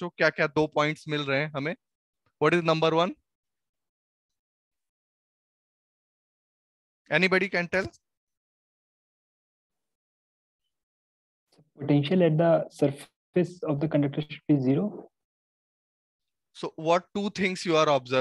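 A young man speaks through a headset microphone, explaining with animation in short bursts.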